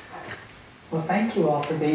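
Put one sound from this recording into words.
A woman speaks calmly into a microphone in a hall.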